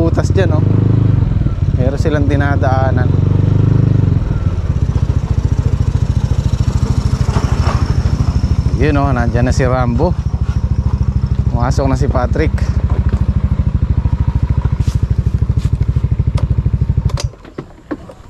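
A motorcycle engine hums steadily while riding, then idles and cuts off.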